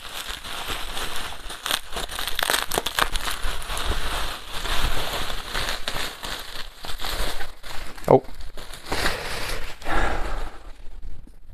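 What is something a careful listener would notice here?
Plastic wrapping crinkles and rustles as it is unwrapped.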